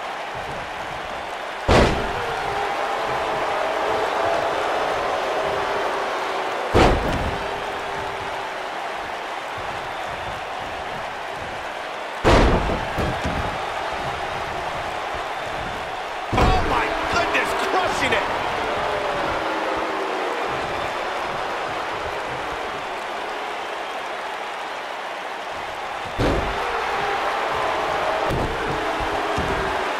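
A large crowd cheers and murmurs steadily, heard as in a big arena.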